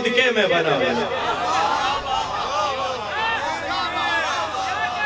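A young man speaks with feeling through a microphone and loudspeakers.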